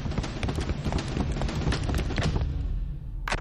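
Heavy footsteps march quickly in step.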